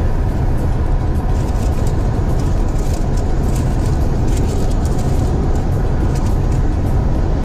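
A car drives steadily along a highway, with a low rumble of engine and road noise from inside the cabin.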